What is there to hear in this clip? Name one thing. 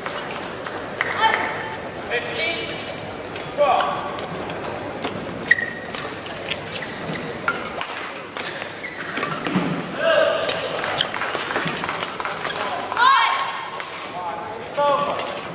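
Rackets smack a shuttlecock back and forth in a rally.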